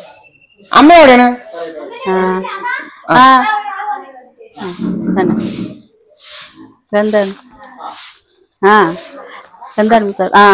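A woman talks loudly and with animation close by.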